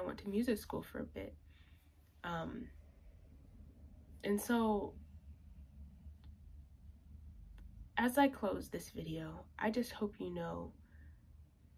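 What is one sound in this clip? A young woman speaks calmly and close by, in short phrases with pauses.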